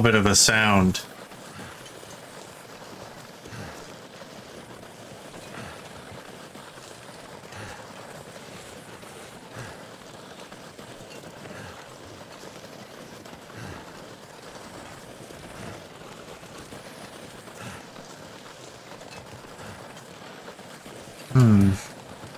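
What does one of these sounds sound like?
Footsteps crunch slowly through deep snow.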